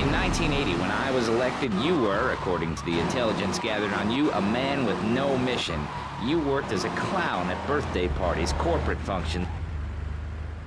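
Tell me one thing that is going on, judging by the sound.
A car engine hums and revs as a car drives.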